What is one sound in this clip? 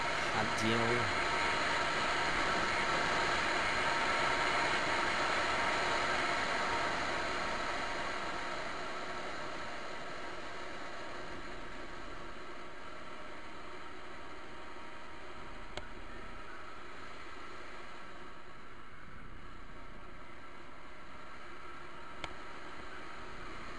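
A motorcycle engine hums steadily as it rides along a road, louder at first and then easing off.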